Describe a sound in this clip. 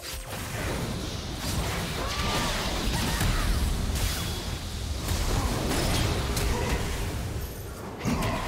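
Game spell effects whoosh and burst in quick succession.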